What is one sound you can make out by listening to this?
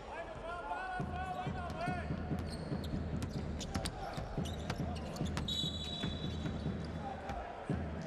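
A basketball bounces steadily on a wooden floor.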